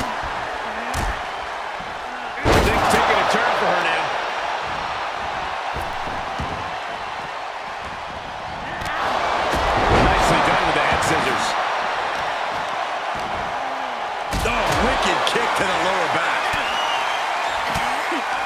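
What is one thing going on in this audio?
A large crowd cheers loudly, swelling at times.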